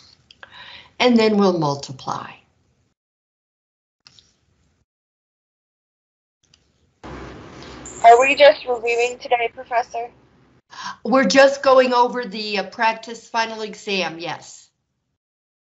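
An elderly woman speaks calmly through a microphone.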